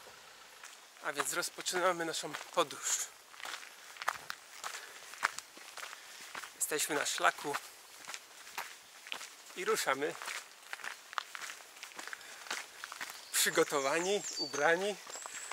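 A young man talks with animation close to the microphone, outdoors.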